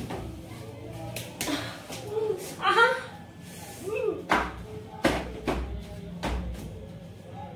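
A couch creaks and thumps during a playful struggle.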